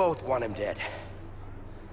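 A man speaks forcefully up close.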